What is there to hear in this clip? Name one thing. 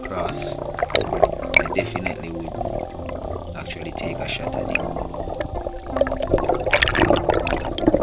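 Air bubbles gurgle and rumble underwater.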